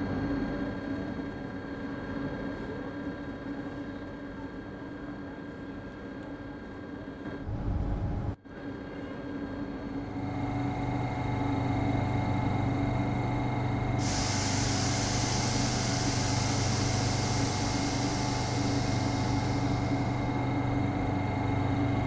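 An electric train hums steadily while standing still.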